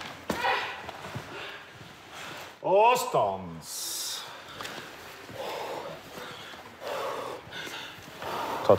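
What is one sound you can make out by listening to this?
A man speaks firmly and calmly nearby, giving instructions.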